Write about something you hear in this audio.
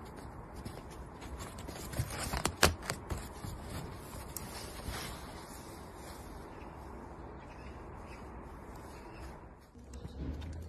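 A cat rustles against cloth.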